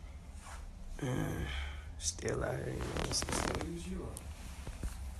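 A young man sings softly close to a phone microphone.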